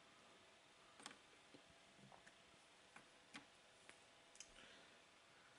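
Puzzle pieces click and tap against each other.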